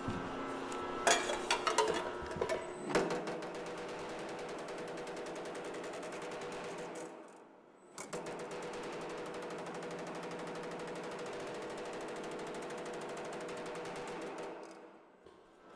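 A power hammer pounds rapidly and steadily on sheet metal.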